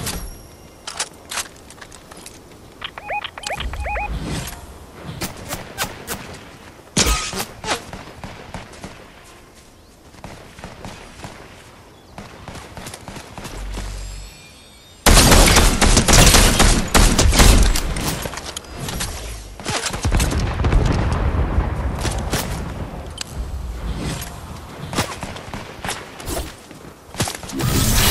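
Footsteps crunch over grass and rock.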